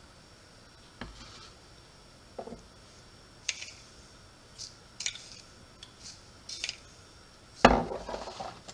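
A spoon clinks against a glass jar.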